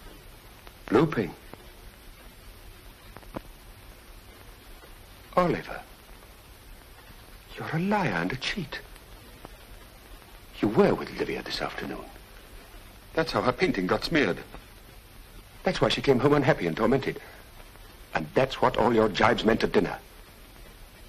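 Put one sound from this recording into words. A middle-aged man speaks in earnest, close by, with pauses.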